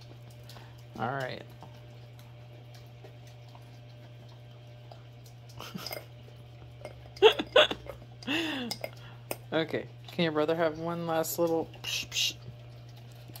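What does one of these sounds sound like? A dog whines in high, wavering bursts.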